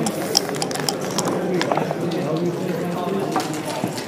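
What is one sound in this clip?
Dice clatter onto a board.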